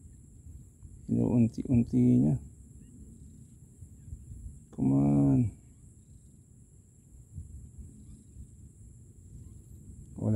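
Water laps gently against a wooden post.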